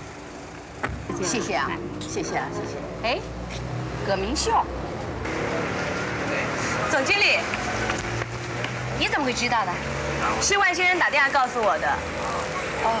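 Women talk with each other calmly, close by.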